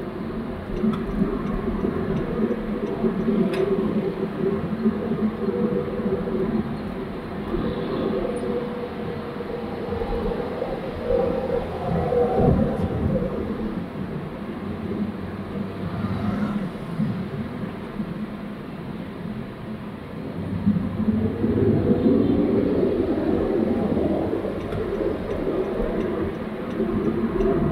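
Motorbike engines buzz nearby in traffic.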